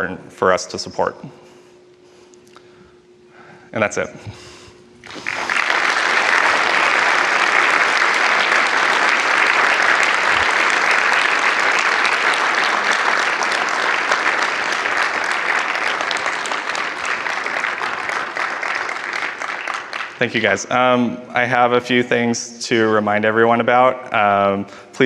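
A young man speaks calmly through a microphone in a large hall.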